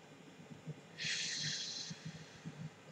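A man exhales with a breathy hiss close by.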